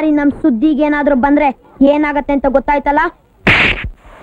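A boy speaks sharply and close by.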